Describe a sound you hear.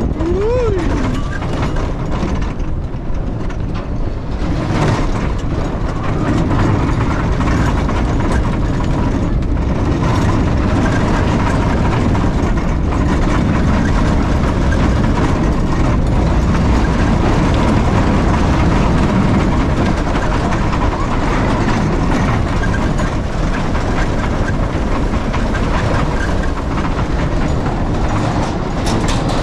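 Sled wheels rumble loudly along a metal track.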